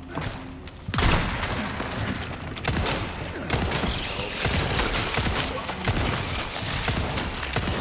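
A handgun fires loud, sharp shots.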